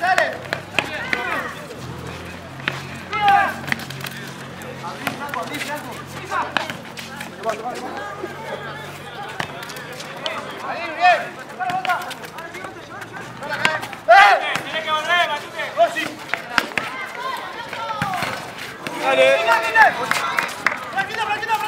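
A ball thuds as players kick it on a hard court.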